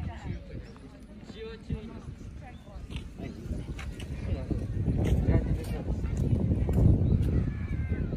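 A crowd of men and women chat quietly in the distance.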